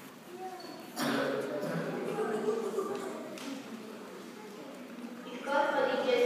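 A young person speaks into a microphone, heard over loudspeakers in a large echoing hall.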